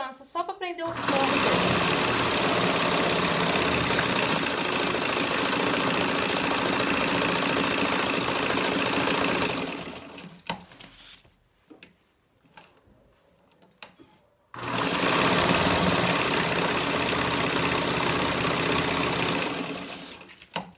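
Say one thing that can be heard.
A sewing machine runs fast with a steady whirring rattle.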